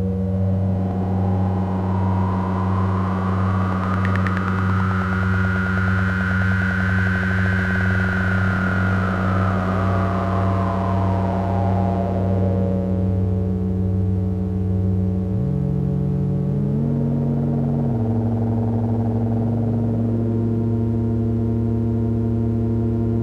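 A modular synthesizer drones with steady low tones.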